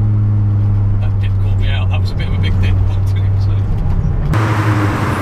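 A man talks casually in the car.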